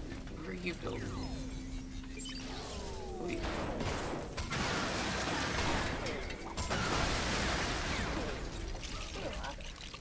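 Game blasts and explosions crash loudly.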